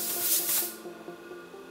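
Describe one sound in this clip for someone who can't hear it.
A spray bottle hisses in a short burst.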